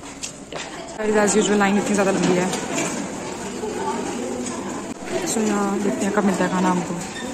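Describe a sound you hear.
A young woman speaks close by, calmly.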